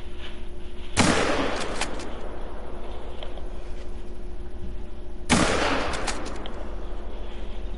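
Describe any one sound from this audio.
A rifle fires two loud shots that ring out and fade.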